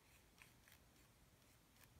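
A brush scrapes softly across paper.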